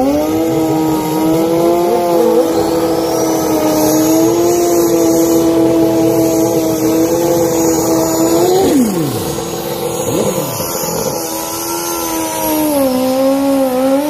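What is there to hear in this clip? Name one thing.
A motorcycle engine revs loudly and steadily at high speed.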